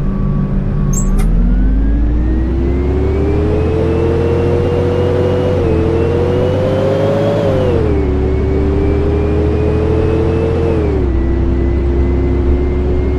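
A bus engine revs up as the bus pulls away, dropping in pitch with each gear change.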